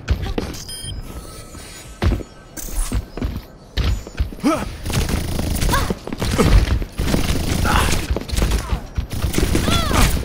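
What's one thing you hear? Gunshots and explosions ring out in a video game.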